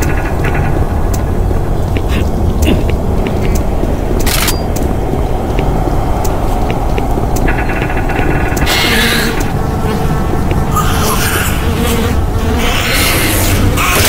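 A low mechanical drone hums steadily throughout.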